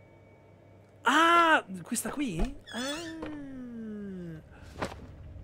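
A young man exclaims loudly into a microphone with a rising and falling voice.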